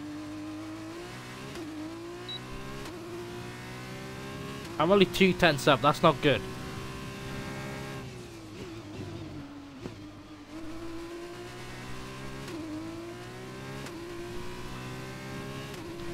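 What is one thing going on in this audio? A racing car engine whines steadily, rising and falling in pitch as the car shifts gears and brakes.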